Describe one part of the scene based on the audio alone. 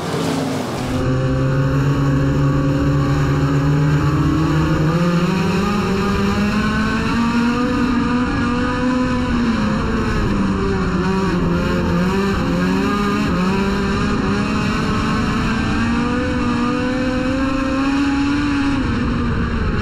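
A race car engine roars loudly from inside the car, rising and falling in pitch as the driver speeds up and slows.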